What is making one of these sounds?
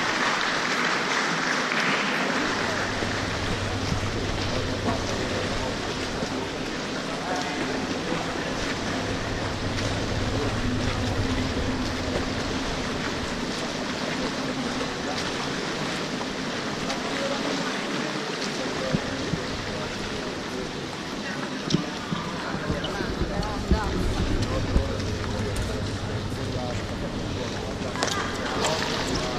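Swimmers splash through the water in a large echoing hall.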